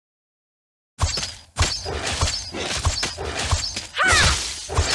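Magic blasts, whooshes and hits crackle in a fast fantasy fight.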